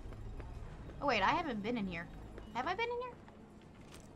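A young girl speaks expressively into a close microphone.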